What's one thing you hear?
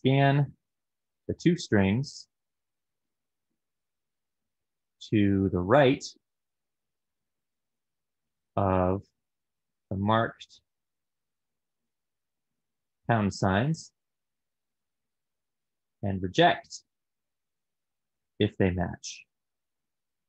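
A man speaks calmly into a close microphone, in short phrases with long pauses.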